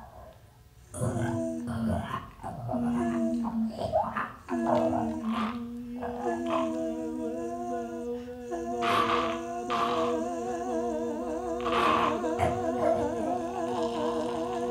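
Two men and a woman sing together in close harmony, with a long held final note.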